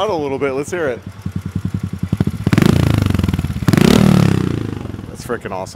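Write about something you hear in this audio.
A small motorbike engine sputters and revs loudly.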